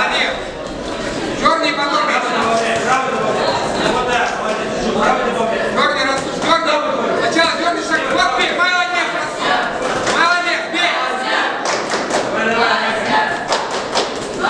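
Boxing gloves thud against each other and against bodies.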